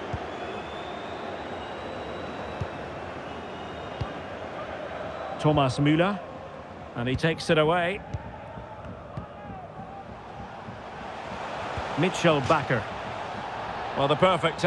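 A large stadium crowd murmurs and roars steadily in the distance.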